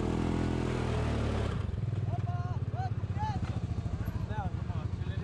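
A dirt bike engine revs loudly up close, then drops to a fast, throbbing idle.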